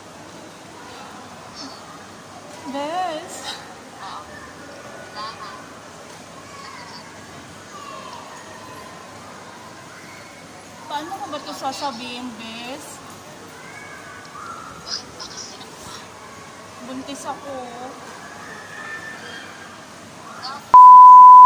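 A young woman talks on a phone held to her ear, speaking with animation.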